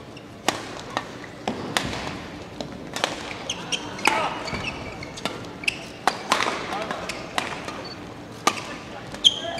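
Shuttlecock hits crack sharply from rackets in a large echoing hall.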